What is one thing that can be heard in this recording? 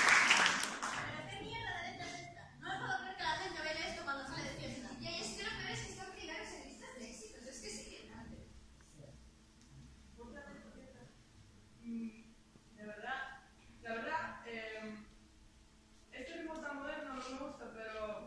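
A young woman speaks calmly through a microphone and loudspeakers in an echoing hall.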